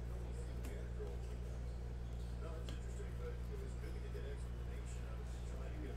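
Trading cards shuffle and flick in a hand.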